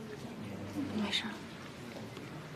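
A young woman answers softly.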